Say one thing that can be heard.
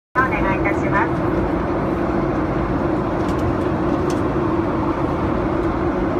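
An airplane engine roars steadily inside the cabin.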